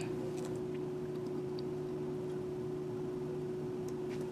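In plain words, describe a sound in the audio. Liquid dribbles from a bottle into a small plastic container.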